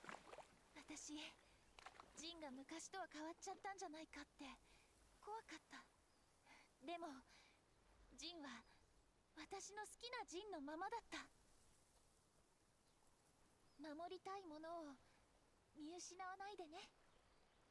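A young woman speaks softly and warmly.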